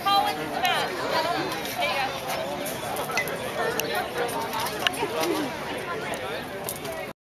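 A crowd of children and adults chatter and call out nearby outdoors.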